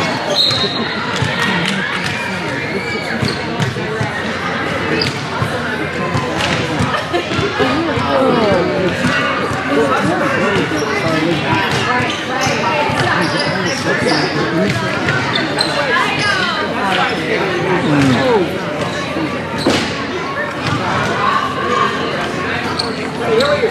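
Sticks clack against a ball and the floor.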